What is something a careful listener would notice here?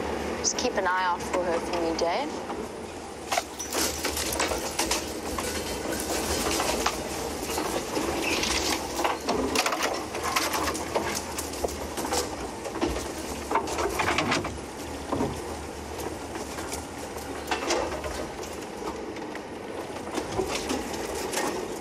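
Tyres crunch and bump over a rough dirt track.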